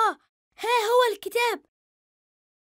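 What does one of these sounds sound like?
A young boy exclaims excitedly, close by.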